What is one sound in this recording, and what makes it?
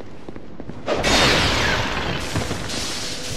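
Clay pots shatter.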